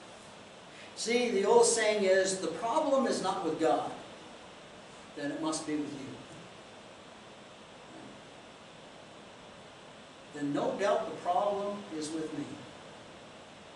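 An older man speaks with animation, pausing between phrases.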